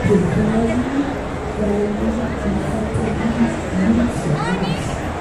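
A crowd of people chatters in a busy, echoing hall.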